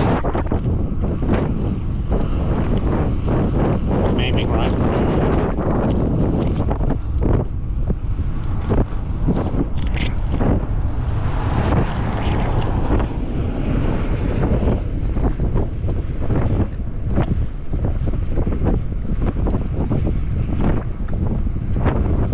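Tyres hum on pavement.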